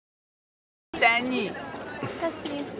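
A young woman talks with animation nearby.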